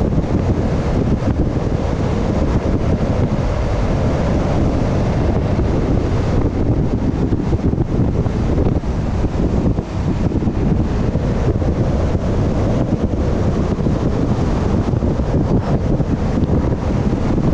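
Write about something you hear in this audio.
Wind rushes loudly past a moving vehicle.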